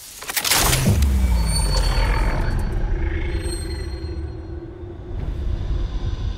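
Spent shell casings clink as they fall.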